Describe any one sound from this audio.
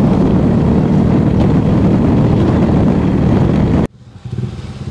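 A motorcycle engine drones while riding.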